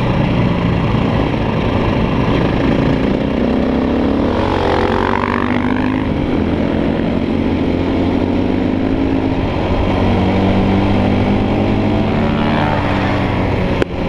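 A dirt bike engine roars up close, revving up and down.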